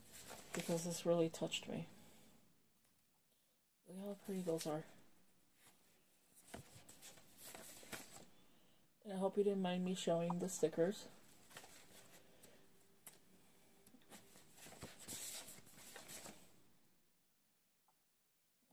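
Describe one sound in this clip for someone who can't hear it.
A sheet of stickers rustles as it is handled.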